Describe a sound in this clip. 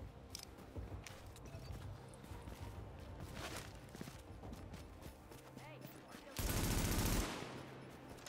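Gunshots fire in sharp bursts, with one loud, heavy blast.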